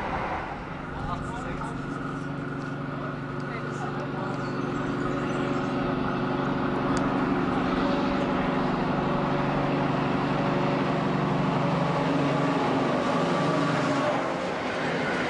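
A diesel train engine drones steadily as it approaches and grows louder.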